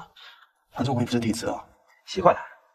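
A young man speaks casually.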